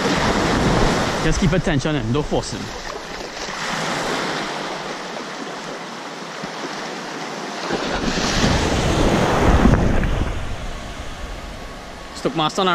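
Small waves wash and lap around the shore.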